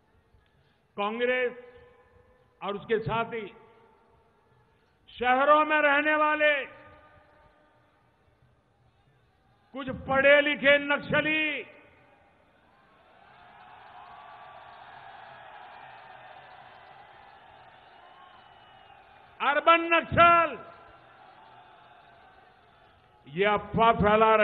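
An elderly man speaks forcefully into a microphone, in short bursts with pauses.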